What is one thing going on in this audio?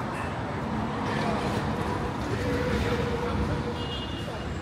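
A bus drives past with an engine hum.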